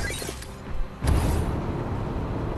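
A bolt of lightning strikes with a loud crack.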